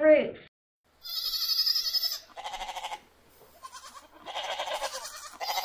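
Goats bleat.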